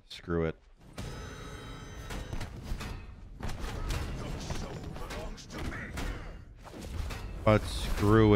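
Weapons clash and strike in a video game.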